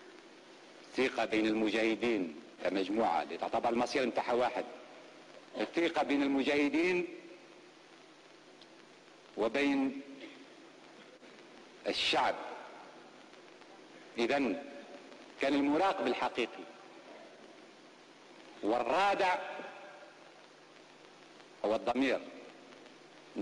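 A middle-aged man delivers a speech forcefully into a microphone, in short bursts with pauses, echoing in a large hall.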